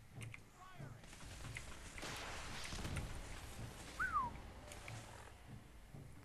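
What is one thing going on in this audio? Gunfire and explosions rumble in a muffled way.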